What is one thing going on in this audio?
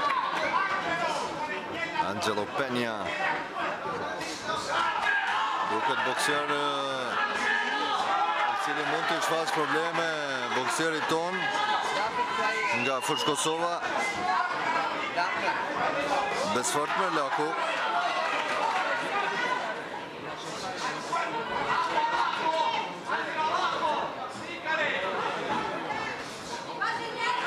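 A crowd of men and women shouts and cheers in a large hall.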